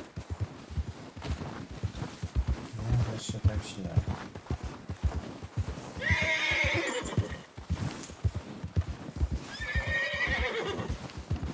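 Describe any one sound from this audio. A horse gallops with heavy, rhythmic hoofbeats on snow.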